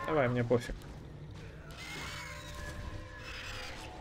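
Magic spell effects whoosh and crackle in a game.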